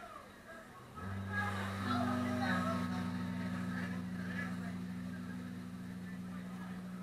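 An electric bass guitar plays low sustained notes.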